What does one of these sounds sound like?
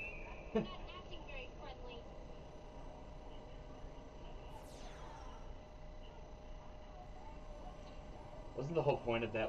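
A young man talks and laughs with animation close to a microphone.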